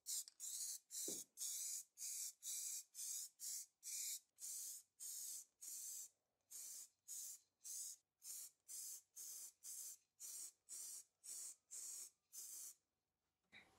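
Short bursts of spray paint hiss from an aerosol can.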